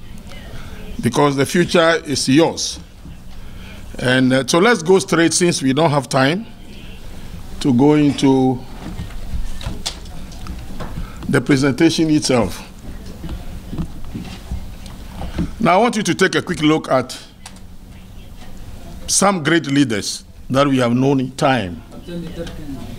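A middle-aged man speaks slowly and deliberately into a microphone, with pauses between phrases, in a room that echoes a little.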